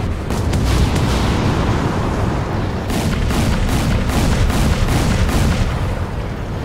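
Explosions boom and crackle one after another.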